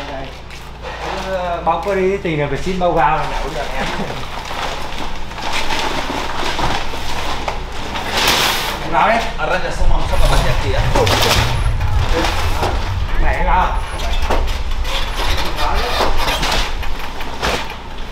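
Men talk and call out to each other nearby.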